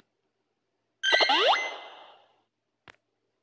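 A phone game plays a bright sparkling sound effect.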